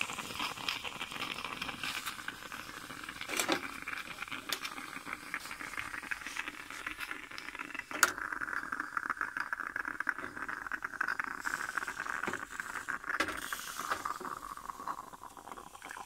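A stovetop espresso pot gurgles and hisses on a gas burner.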